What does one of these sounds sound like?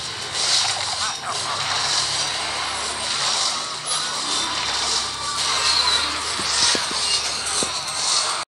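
Video game battle sounds clash and crackle steadily.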